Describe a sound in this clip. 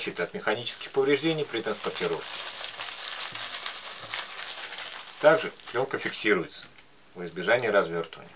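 Bubble wrap rustles as it is unwrapped.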